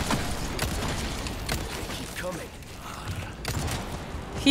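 Pistol shots ring out in sharp bursts.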